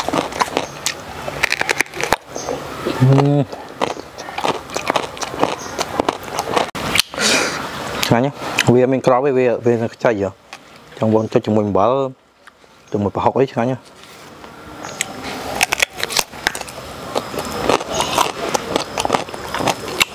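A young man crunches loudly as he bites and chews crisp fruit.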